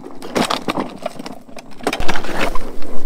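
A hand cart rattles over rough ground.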